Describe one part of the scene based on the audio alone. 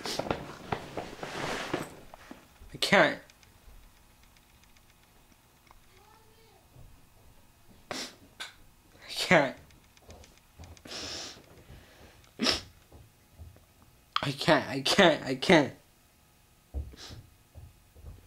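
A teenage boy speaks close up, in bursts with pauses.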